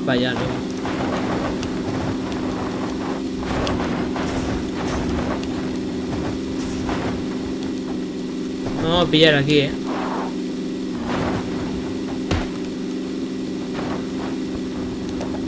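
Tyres rumble over grass and dirt.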